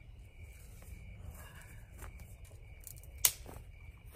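Footsteps crunch on dry ground and leaves.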